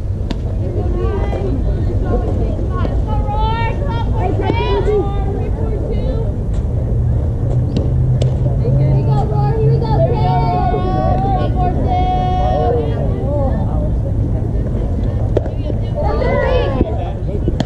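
Young girls shout and cheer from a distance.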